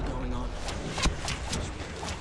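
Fireballs whoosh past and burst with a bang.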